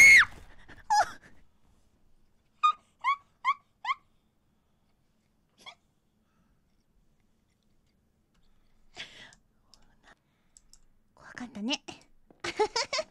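A young woman squeals and talks excitedly into a microphone.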